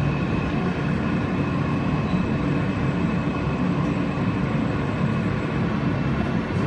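A subway train rumbles and rattles loudly along the track.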